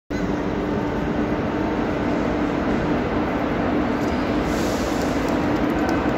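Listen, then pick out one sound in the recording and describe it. A diesel locomotive idles with a steady low hum in a large echoing hall.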